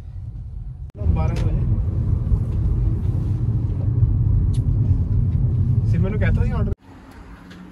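A car engine and tyres rumble steadily on a wet road.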